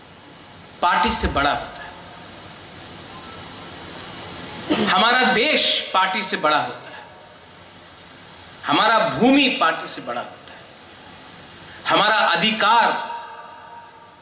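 A man speaks calmly through a microphone in short bursts with pauses, in a room with some echo.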